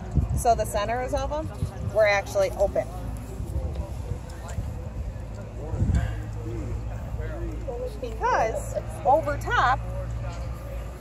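A woman speaks with animation nearby, outdoors.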